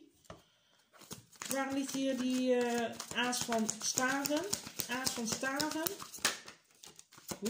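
Playing cards riffle and flutter as they are shuffled by hand.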